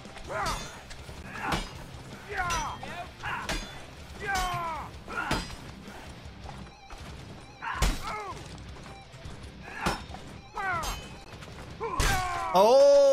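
Swords clash with sharp metallic hits.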